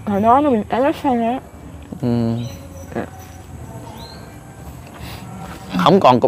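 An elderly woman speaks close by.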